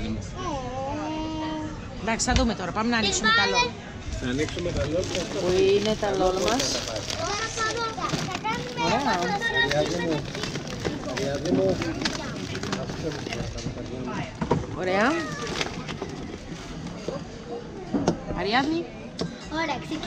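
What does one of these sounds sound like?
Young girls talk excitedly close by.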